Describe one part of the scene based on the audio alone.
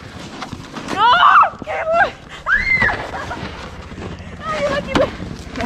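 A young woman squeals and shouts excitedly nearby.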